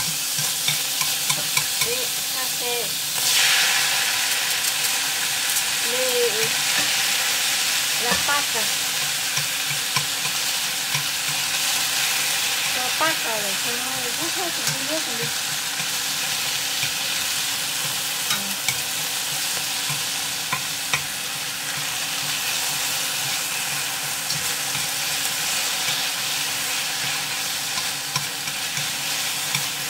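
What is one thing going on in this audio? Chopsticks tap and scrape against a metal pan.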